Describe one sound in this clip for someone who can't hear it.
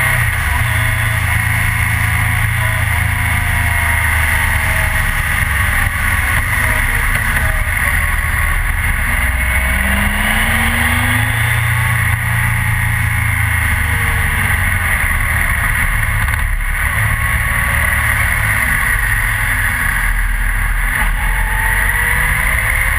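A motorcycle engine hums steadily and changes pitch as it speeds up and slows.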